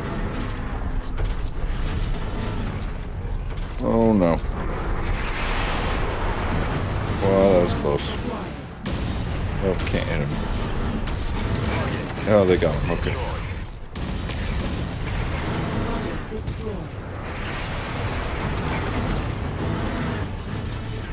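Heavy weapons fire with booming blasts.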